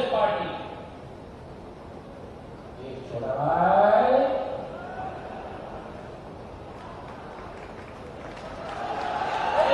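A man speaks loudly and passionately into a microphone, heard through loudspeakers in a large open space.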